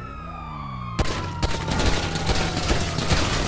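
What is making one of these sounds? A pistol fires shots in rapid succession.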